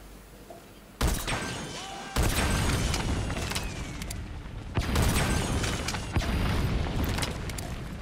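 Explosions boom and rumble one after another.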